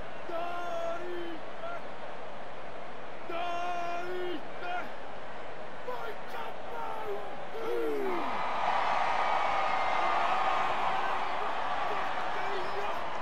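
A large stadium crowd roars and cheers, growing louder partway through.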